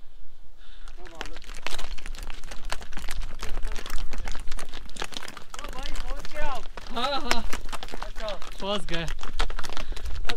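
Horse hooves clop and clatter on a stone path.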